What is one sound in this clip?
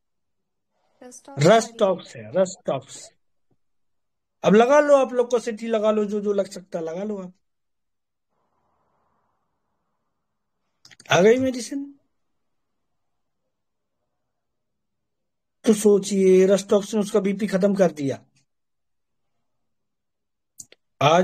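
A middle-aged man speaks calmly and close to the microphone, in short phrases with pauses.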